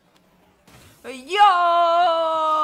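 A young woman lets out a long, loud, high-pitched cry of surprise into a microphone.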